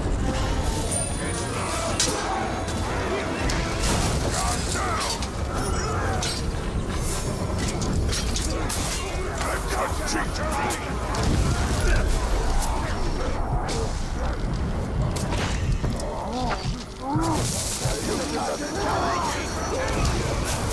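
Swords clash and strike in a fierce fight.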